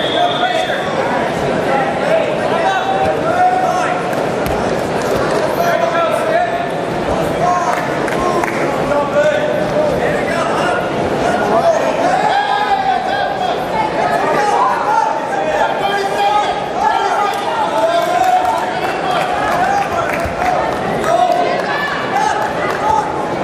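A crowd chatters and calls out throughout a large echoing hall.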